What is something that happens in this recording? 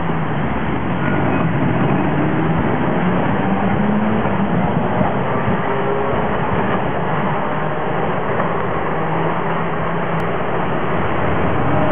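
A tram rumbles past on rails nearby.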